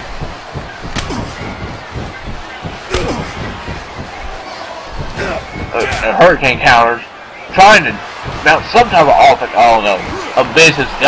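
Punches land with sharp smacks.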